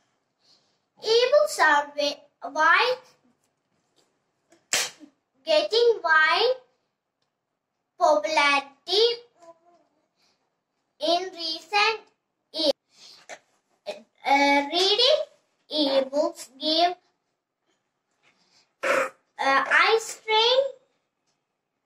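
A young girl recites clearly and with expression, close by, in short phrases with pauses.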